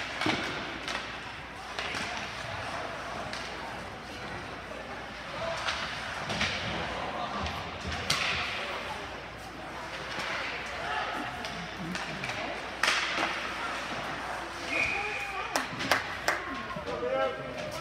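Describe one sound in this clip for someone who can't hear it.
A puck strikes the boards with a sharp crack.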